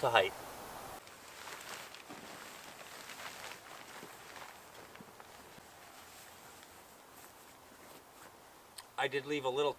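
Canvas rustles and flaps as a tarp is moved.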